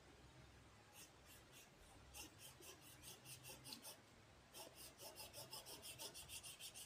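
A marker scratches rapidly back and forth across paper.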